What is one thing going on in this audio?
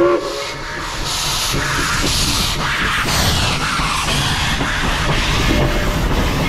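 Steam hisses loudly as a locomotive passes close by.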